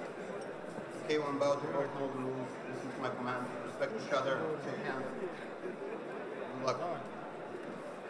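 A man speaks into a handheld microphone, heard over loudspeakers in a large hall.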